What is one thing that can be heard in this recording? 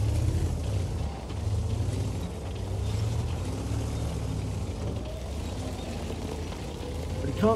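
A tank engine rumbles low and steady as the tank rolls along.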